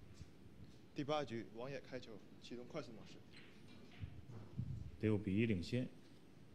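A man announces calmly through a loudspeaker.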